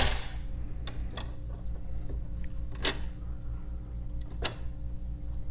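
A plastic case knocks and clatters against metal parts.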